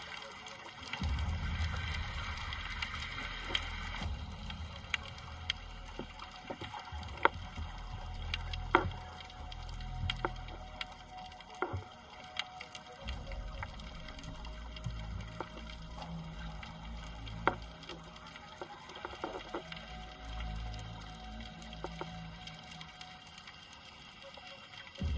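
Water rumbles and swishes, heard muffled from underwater.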